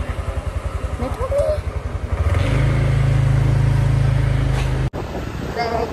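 A scooter engine hums steadily.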